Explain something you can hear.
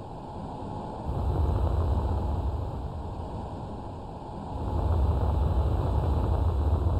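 A spaceship's engines rumble deeply, swelling louder and softer.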